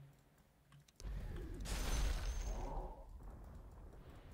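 Game battle effects rumble and crash.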